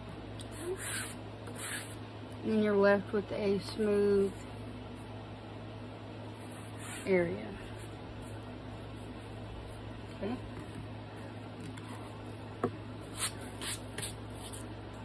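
Stiff card rustles and scrapes as hands handle it.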